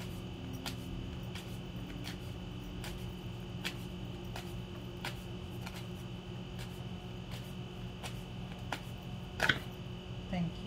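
Cards riffle and slap softly as they are shuffled by hand.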